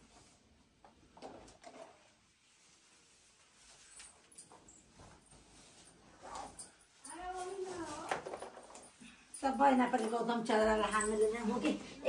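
Cloth rustles as it is folded and knotted.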